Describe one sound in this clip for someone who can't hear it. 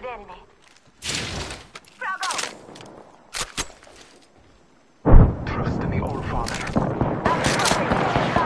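Metallic clicks and clacks sound as weapons are picked up.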